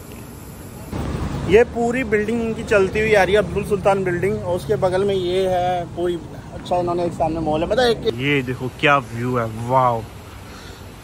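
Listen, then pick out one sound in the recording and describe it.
A young man talks with animation, close to the microphone.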